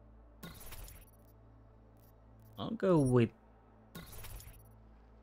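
A game menu makes short electronic clicking chimes.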